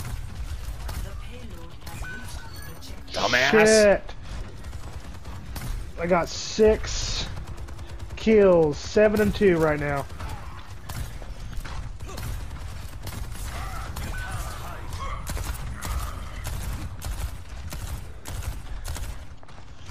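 Gunfire in a video game sounds in rapid bursts.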